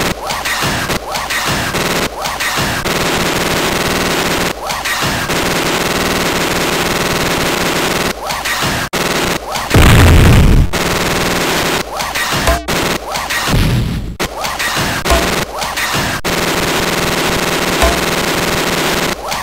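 Game music plays steadily.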